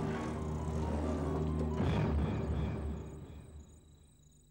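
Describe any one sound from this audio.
A car engine idles nearby and fades away.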